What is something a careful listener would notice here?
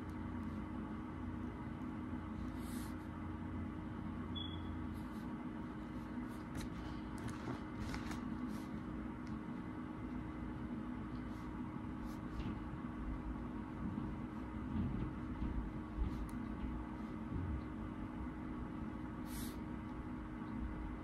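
A pen scratches softly on paper as it writes.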